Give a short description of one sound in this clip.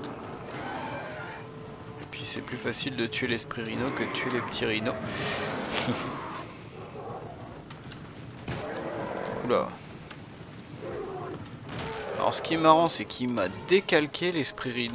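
A wolf growls and snarls.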